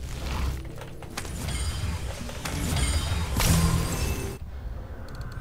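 Heavy footsteps crunch on stone.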